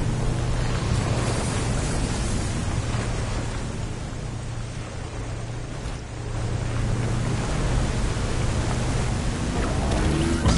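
A motorboat engine hums steadily.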